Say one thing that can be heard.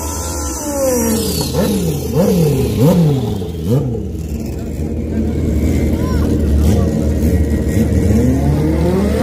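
A motorcycle engine revs sharply up and down again and again.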